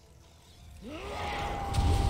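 A crackling electric zap sounds in a video game.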